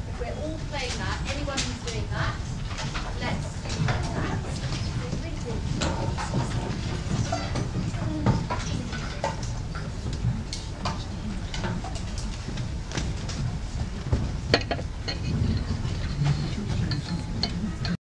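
Music stands and chairs clatter and knock on a stage.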